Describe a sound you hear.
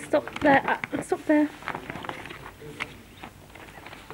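Paper rustles as a hand moves across it.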